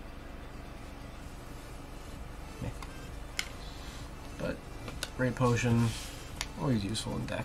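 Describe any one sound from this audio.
Trading cards rustle and slide as they are shuffled by hand.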